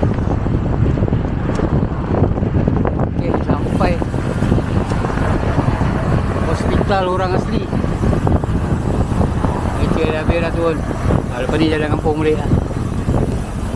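Tyres rumble steadily on a road as a car drives along.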